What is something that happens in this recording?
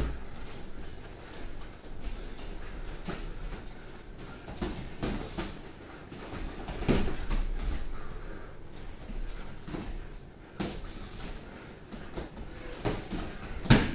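Footsteps shuffle and squeak on a padded ring floor.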